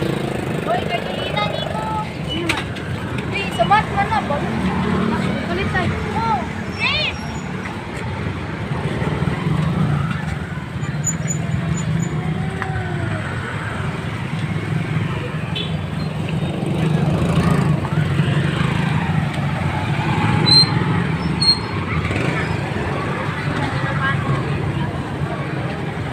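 Traffic rumbles steadily on a street outdoors.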